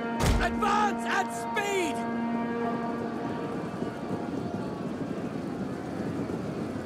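A crowd of soldiers roars in a distant battle.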